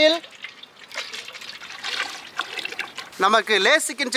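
Water pours and splashes into a metal pan.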